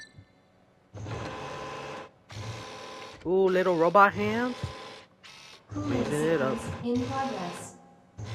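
A robotic arm whirs as it moves.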